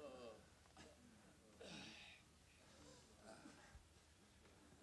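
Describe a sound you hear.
A young man whispers quietly nearby.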